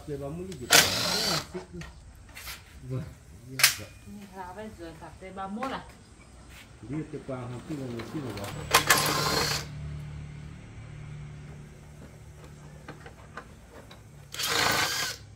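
A cordless impact wrench rattles loudly in short bursts.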